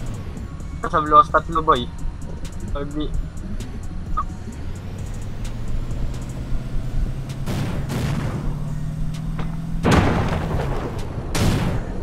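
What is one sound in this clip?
A vehicle engine hums and revs up as it drives.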